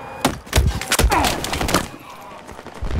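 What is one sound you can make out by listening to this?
Rapid gunfire cracks loudly in short bursts.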